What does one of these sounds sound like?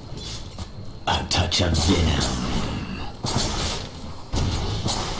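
Magic spells and weapon hits crackle and clash in a fantasy battle.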